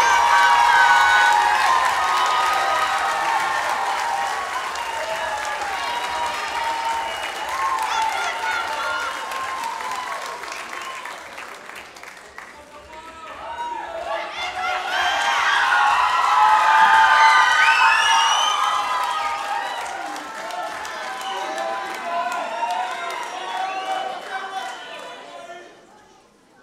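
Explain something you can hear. A large audience cheers, whoops and whistles in an echoing hall.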